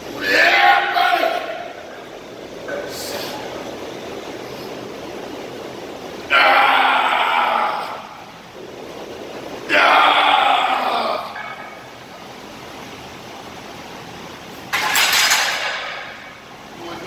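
A man exhales forcefully with each squat.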